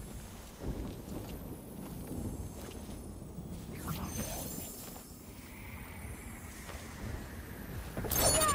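A low rumbling drone runs throughout.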